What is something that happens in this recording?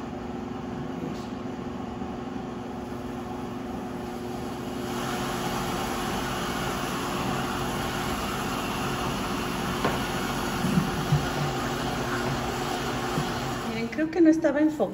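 A blender motor whirs steadily.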